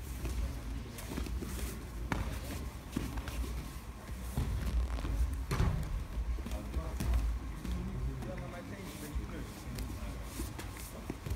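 Several men talk quietly nearby.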